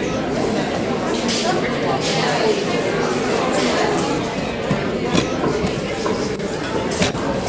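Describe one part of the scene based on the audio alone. A crowd of adults murmurs and chats.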